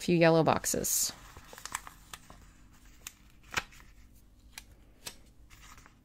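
A sticker peels off a backing sheet with a faint crackle.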